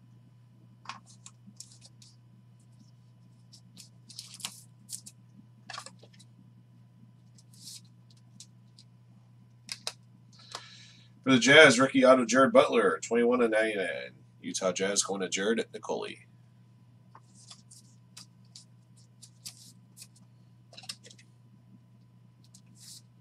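Plastic card cases click and rustle in hands.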